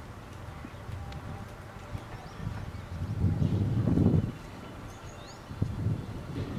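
Wind gusts against the microphone outdoors.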